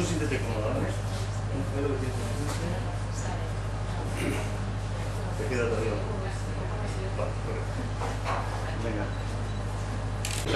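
A young woman speaks calmly into a nearby microphone.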